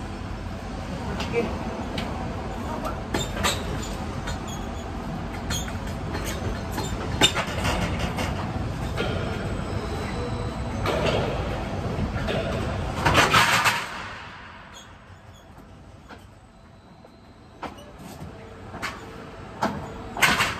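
Tools knock and clatter against metal.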